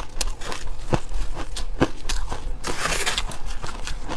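A spoon scrapes and crunches through crumbly ice close to a microphone.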